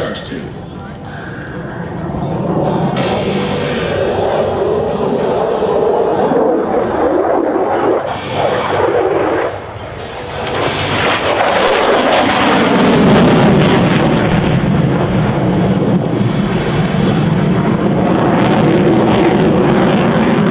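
An F-16 fighter jet roars overhead with a deep, rumbling jet engine.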